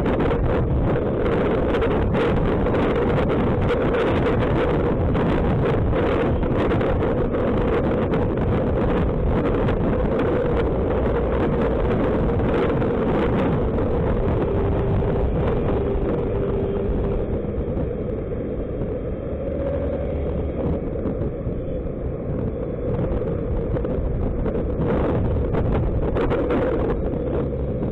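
Wind rushes and buffets loudly past a moving scooter.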